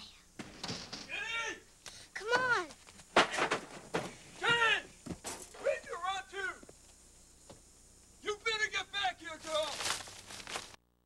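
A man shouts and yells loudly nearby.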